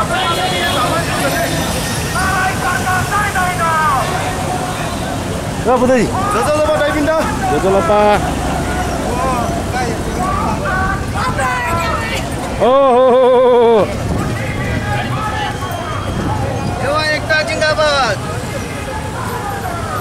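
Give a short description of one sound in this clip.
A crowd of marchers chants and shouts loudly outdoors.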